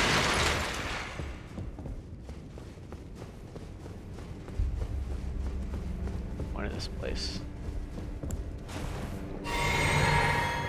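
A man speaks casually close to a microphone.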